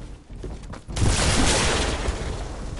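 A rocket explodes with a loud boom.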